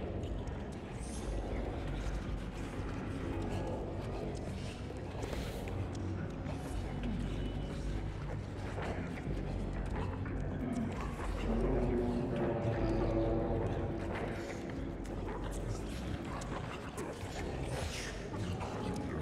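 Small footsteps patter across creaking wooden floorboards.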